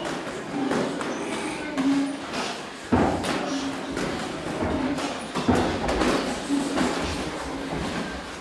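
Boxing gloves thud against a sparring partner in an echoing hall.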